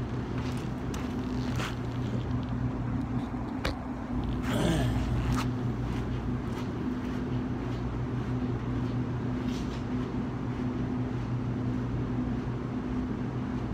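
Footsteps scuff on concrete as a man walks away.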